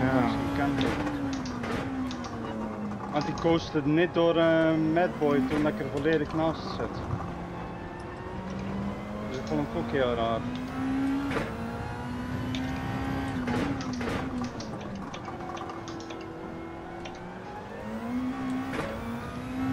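A racing car engine revs up and down as gears shift.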